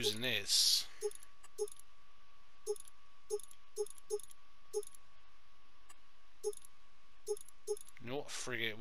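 Short menu clicks sound now and then.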